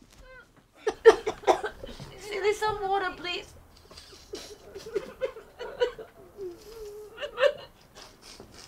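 A woman sobs and cries close by.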